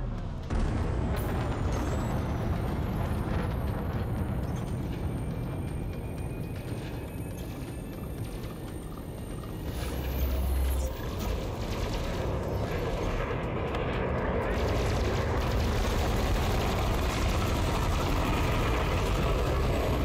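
A deep engine rumble drones steadily.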